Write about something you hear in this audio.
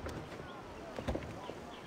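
A pistol knocks down onto a wooden table.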